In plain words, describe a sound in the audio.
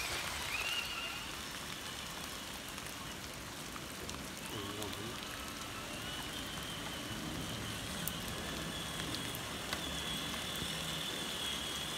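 Toy trucks' motors whine faintly in the distance.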